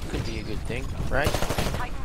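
A rifle fires shots.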